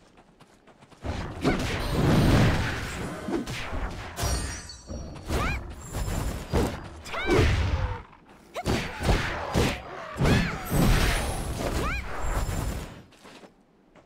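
Weapons clash and strike in a loud fight.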